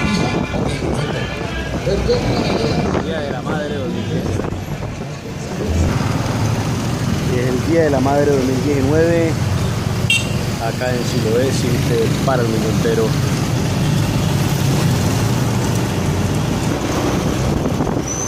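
Other motorbikes and cars pass along a busy street.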